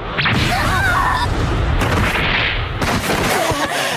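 Bodies crash hard into rocky ground.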